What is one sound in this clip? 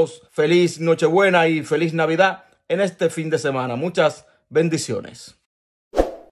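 A man speaks with animation, close to a phone microphone.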